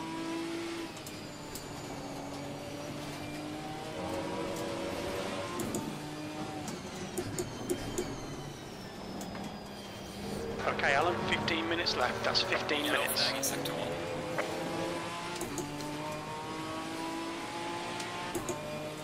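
A racing car engine revs up and drops as it shifts through the gears.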